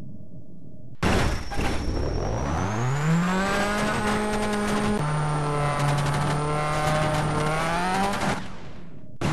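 A rally car engine revs up and roars at high speed.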